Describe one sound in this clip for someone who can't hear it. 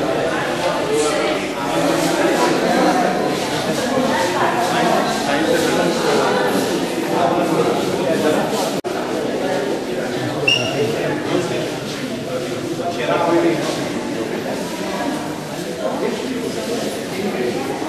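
A crowd of people chatter nearby, their voices echoing indoors.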